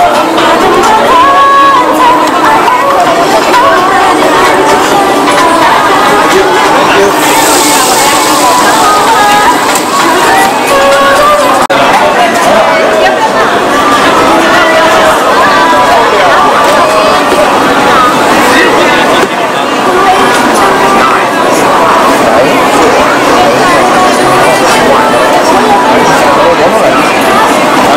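A busy crowd chatters all around outdoors.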